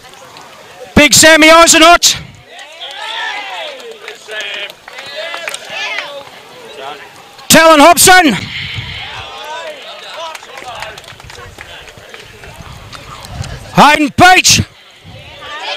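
Young men cheer and shout loudly.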